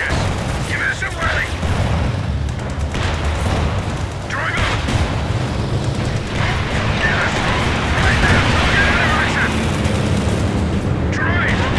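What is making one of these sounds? A tank engine rumbles and clanks.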